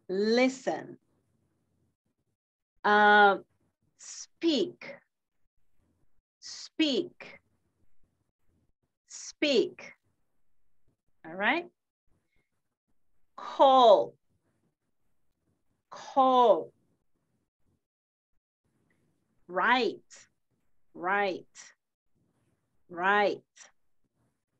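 A woman speaks in short, clear phrases over an online call, with pauses between them.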